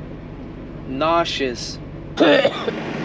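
A young man speaks briefly close by.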